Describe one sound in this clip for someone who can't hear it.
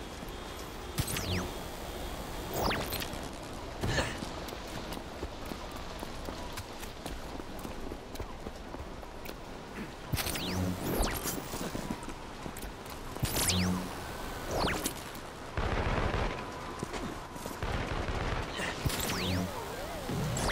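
A loud whoosh sweeps past in bursts.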